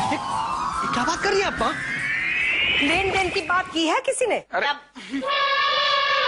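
A middle-aged woman speaks angrily and with animation.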